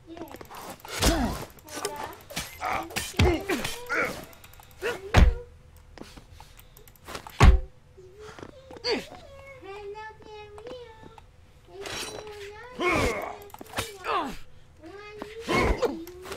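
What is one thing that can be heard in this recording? An axe strikes with heavy thuds.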